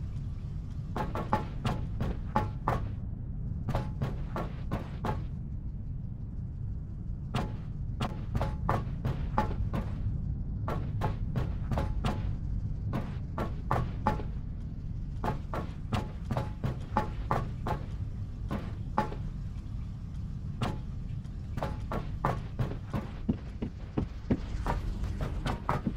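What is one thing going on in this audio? Footsteps clank on a metal floor at a steady walking pace.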